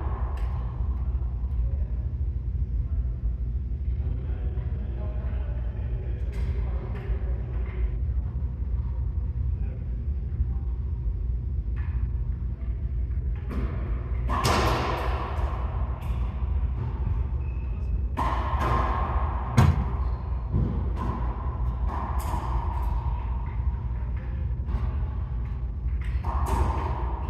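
Men talk and call out across an echoing court.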